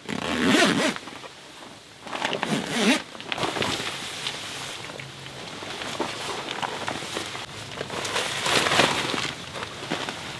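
A plastic sheet rustles and crackles as it is shaken.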